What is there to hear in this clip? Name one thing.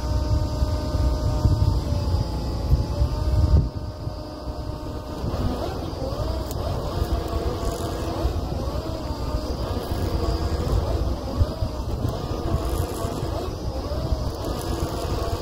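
A drilling rig's engine rumbles steadily outdoors.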